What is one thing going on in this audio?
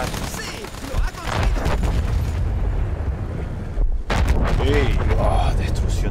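Machine guns rattle in rapid bursts.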